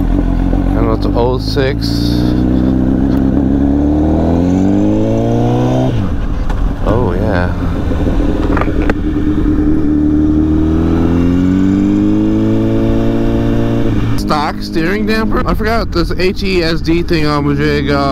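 A motorcycle engine hums close by and rises in pitch as the bike speeds up.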